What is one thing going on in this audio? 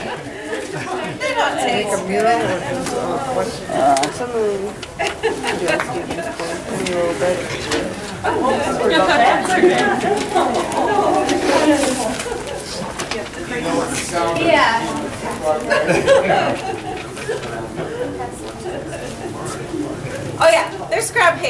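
A woman speaks calmly to a small group.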